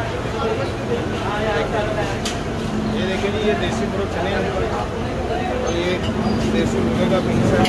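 A ladle scrapes and sloshes in a large pot of broth.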